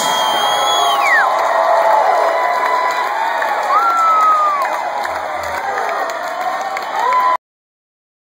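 Electric guitars play loudly through amplifiers, with sliding, wailing notes.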